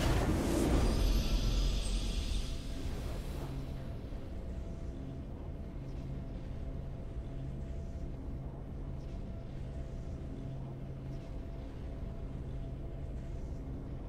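Calm, triumphant music plays steadily.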